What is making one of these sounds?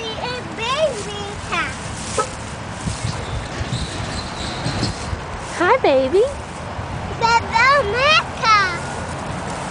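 A toddler squeals and babbles in a high voice close by.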